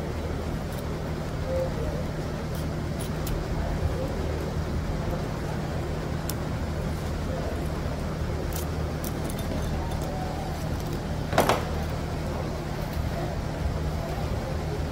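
Metal springs and parts clink and rattle in hands.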